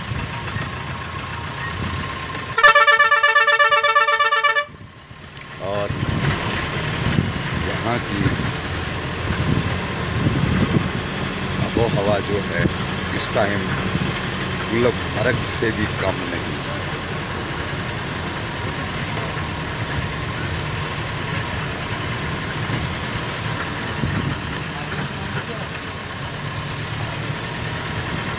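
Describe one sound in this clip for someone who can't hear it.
A vehicle's engine hums and its tyres rumble on the road.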